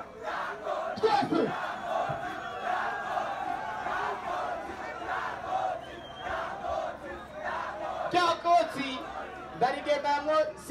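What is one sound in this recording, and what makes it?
A man's voice shouts through a loudspeaker over the crowd.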